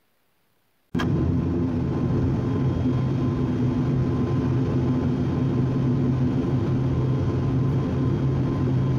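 An airplane's propeller engines drone loudly and steadily.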